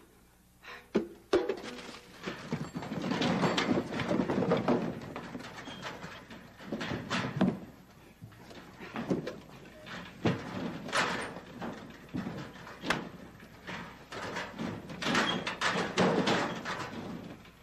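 A metal locker door bangs and rattles.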